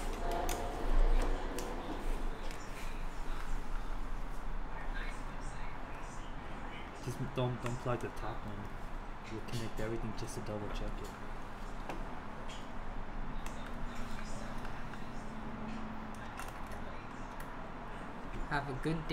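Small tools click and tap against plastic parts.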